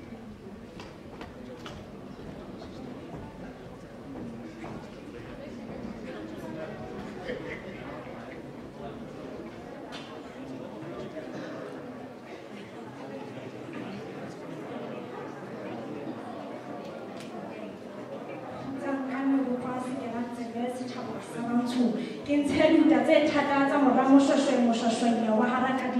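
A crowd chatters in a large hall.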